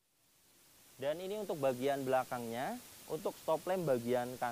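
A man speaks calmly and clearly nearby.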